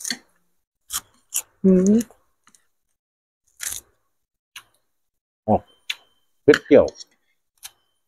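A man crunches on fresh lettuce while chewing.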